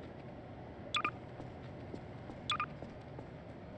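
A game tool zaps with short electronic blips.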